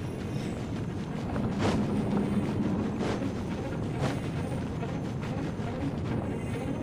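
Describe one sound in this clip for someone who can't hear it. Footsteps patter quickly on stone as a game character runs.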